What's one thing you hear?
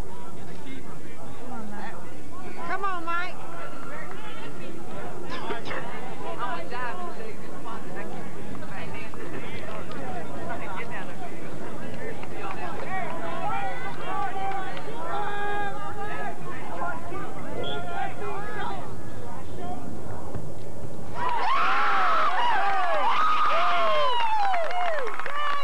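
Young players shout to each other across an open field in the distance.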